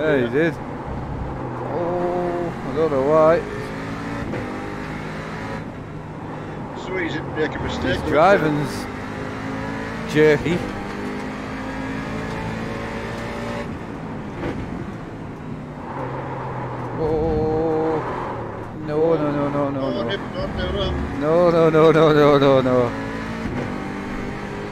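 A racing car engine drones and changes pitch with the gears.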